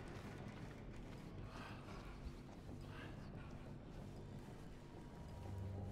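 Footsteps crunch over soft ground.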